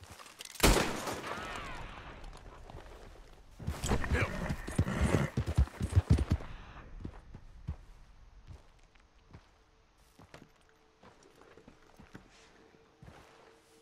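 Horse hooves thud on the ground at a steady walk.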